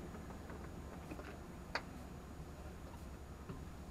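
Rope and metal fittings knock on a sailboat deck.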